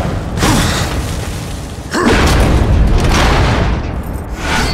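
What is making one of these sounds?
A heavy chest creaks open with a loud thud.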